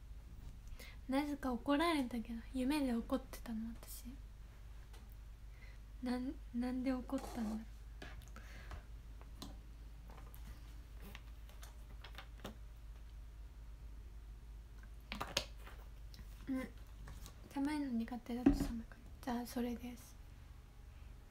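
A young woman speaks softly and close by, in short bursts.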